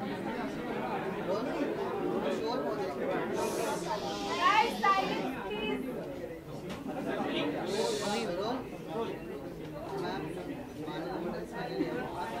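A middle-aged woman speaks calmly into microphones.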